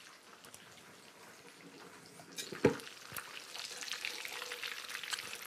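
Food sizzles and crackles in a frying pan.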